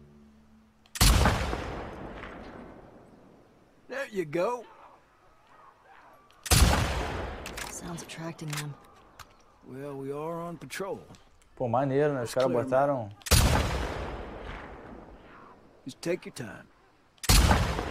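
A sniper rifle fires loud single shots that echo away.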